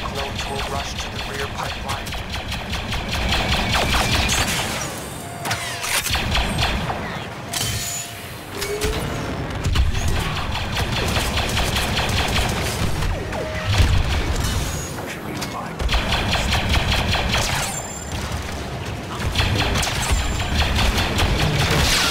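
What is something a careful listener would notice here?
Rapid blaster fire crackles and zaps.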